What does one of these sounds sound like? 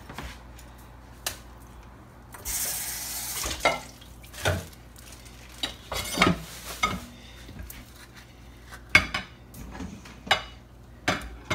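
A spoon scrapes the flesh out of an avocado skin.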